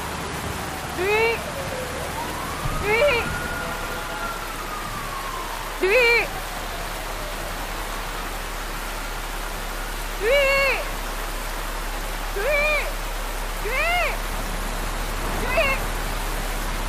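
A young woman calls out loudly again and again.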